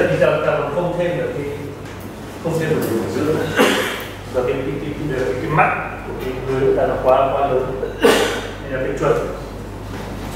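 A man lectures in a calm voice.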